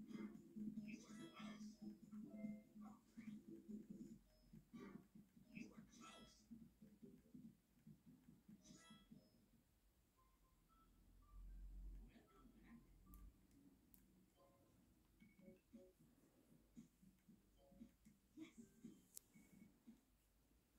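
A video game plays music and beeps through a television speaker.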